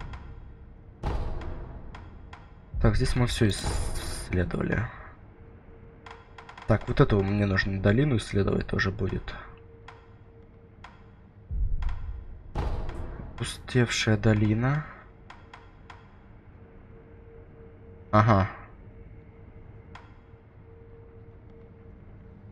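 Soft menu clicks tick as a selection moves up and down a list.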